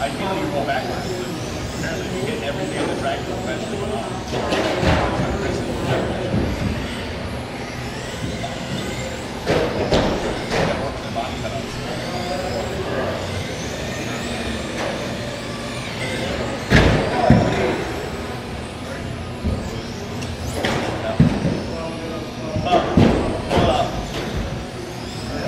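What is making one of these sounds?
Small electric model cars whine as they race around a track.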